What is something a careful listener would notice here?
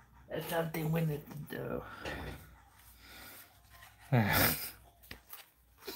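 A plastic card pack crinkles and rustles as it is handled.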